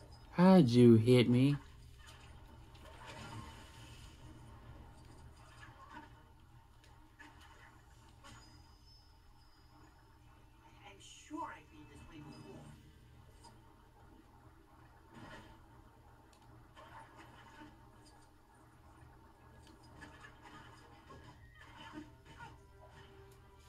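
Video game sounds and music play softly from a television.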